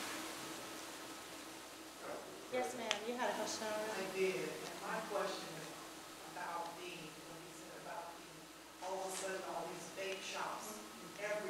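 A crowd of seated adults murmurs quietly in a large room.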